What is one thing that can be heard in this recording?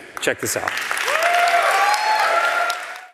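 An audience cheers and applauds loudly.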